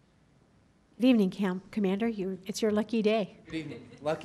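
A man speaks calmly into a microphone, heard through a loudspeaker in a large room.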